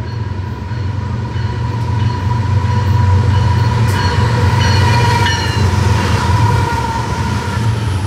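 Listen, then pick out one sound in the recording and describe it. A train horn sounds loudly as the locomotive nears.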